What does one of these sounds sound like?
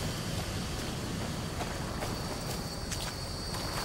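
Water laps gently at a shore.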